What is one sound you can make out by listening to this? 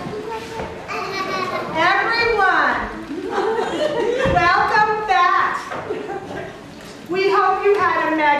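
A woman calls out loudly through a megaphone.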